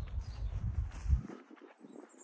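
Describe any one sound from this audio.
Wind gusts briefly against the microphone outdoors.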